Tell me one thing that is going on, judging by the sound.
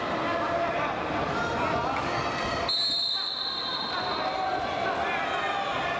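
Wrestling shoes squeak on a mat.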